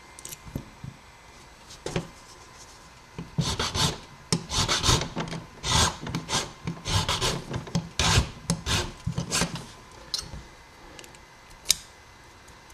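Small metal parts click and tap.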